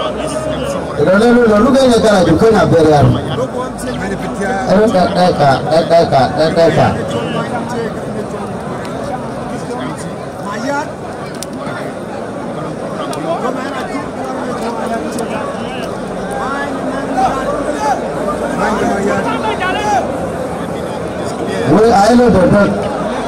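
A large outdoor crowd chatters and cheers loudly in bursts.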